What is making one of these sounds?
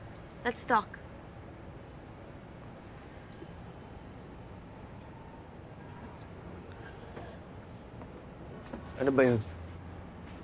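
A young woman calls out sharply, close by.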